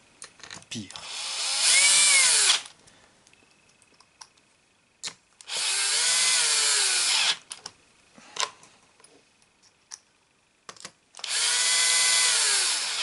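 An electric screwdriver whirs in short bursts, driving screws.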